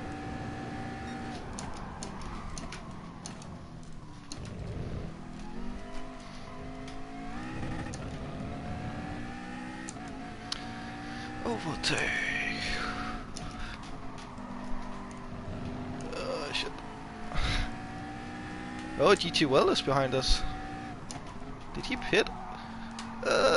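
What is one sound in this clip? A racing car engine roars steadily, its pitch climbing and dropping as gears change.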